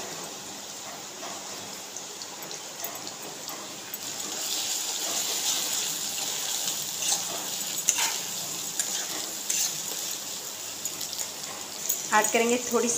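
Food sizzles in hot oil in a wok.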